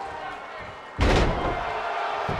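A heavy body slams onto a wrestling mat with a loud thud.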